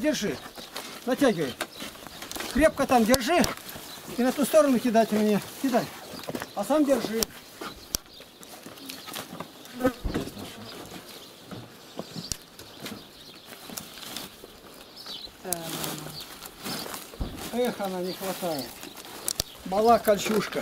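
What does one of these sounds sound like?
Dry stalks rustle and crackle.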